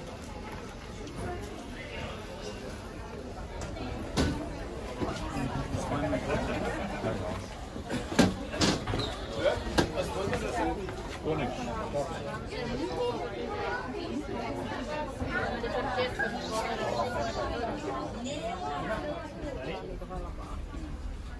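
A crowd of shoppers chatters in the background.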